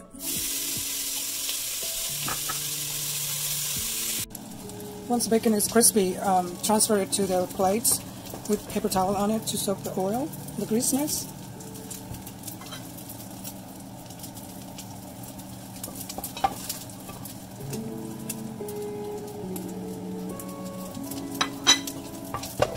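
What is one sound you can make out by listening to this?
Bacon sizzles and crackles in a hot pot.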